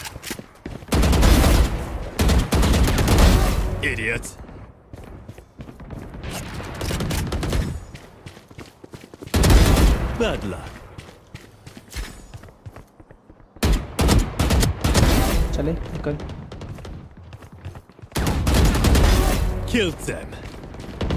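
Rapid gunfire rings out in short, loud bursts.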